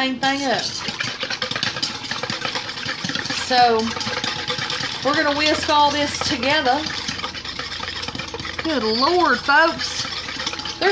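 A spoon scrapes and clinks against a metal bowl.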